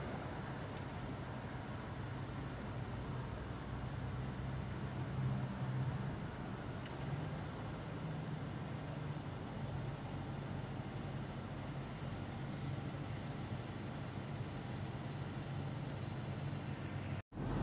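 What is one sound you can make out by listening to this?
Tyres roll over the road with a steady rush.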